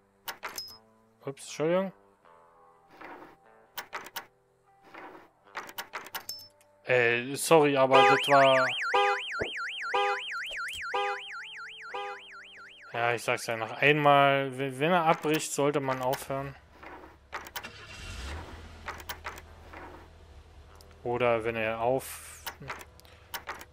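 A metal lock pick clicks and scrapes inside a lock.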